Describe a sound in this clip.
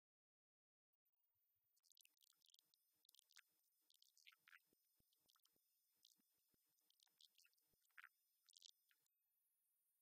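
A synthesizer plays short electronic notes.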